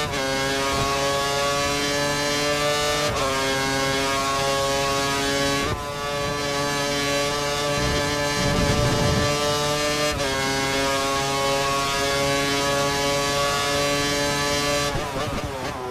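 A racing car engine screams at high revs, its pitch jumping up and down with quick gear changes.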